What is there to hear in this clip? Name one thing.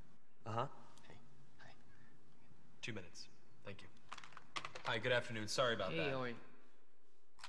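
A man talks cheerfully into a phone.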